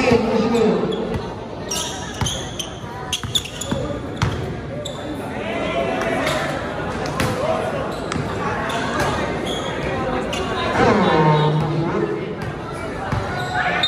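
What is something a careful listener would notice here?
Sneakers squeak on the court.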